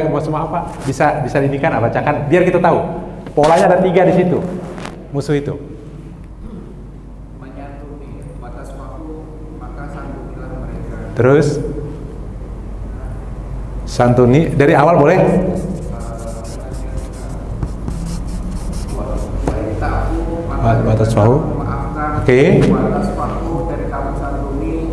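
A man lectures with animation through a headset microphone.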